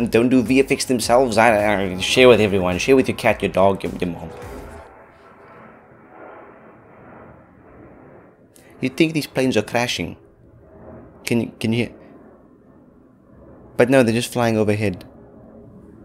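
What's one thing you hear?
A young man talks with animation close to a microphone, in short bursts with pauses.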